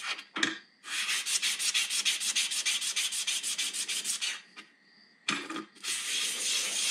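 A small object rubs quickly back and forth on sandpaper with a rhythmic scratching.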